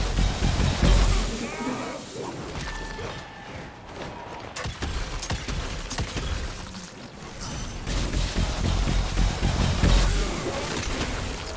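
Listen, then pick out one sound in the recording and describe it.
Heavy blows thud and crunch as a warrior strikes a monster.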